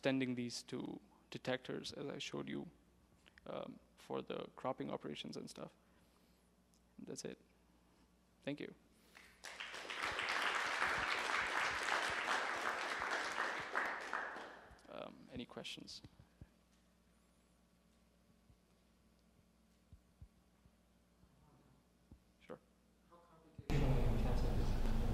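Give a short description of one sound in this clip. A young man speaks calmly through a microphone in a large room.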